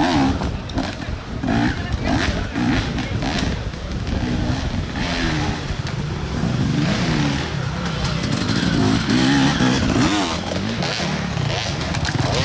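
A dirt bike engine revs and buzzes loudly, rising and falling in pitch.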